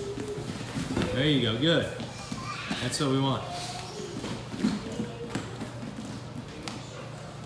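Feet shuffle and thump on a padded mat.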